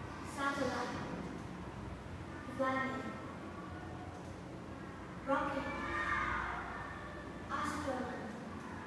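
A young girl speaks short phrases nearby, in bursts.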